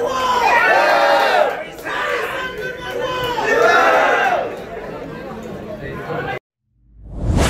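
A crowd murmurs and talks.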